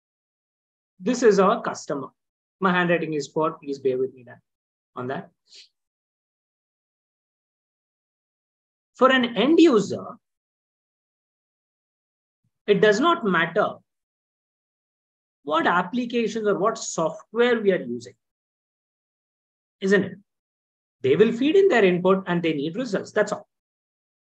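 A young man speaks calmly, explaining, heard through an online call microphone.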